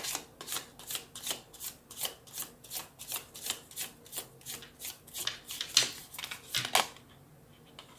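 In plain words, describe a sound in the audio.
Cards are shuffled with quick, rhythmic riffling taps.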